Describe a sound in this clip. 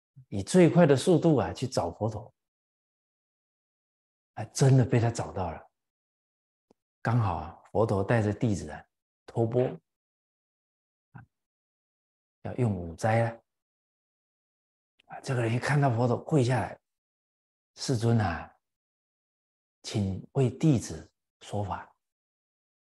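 An elderly man speaks calmly and with animation into a close microphone, pausing between phrases.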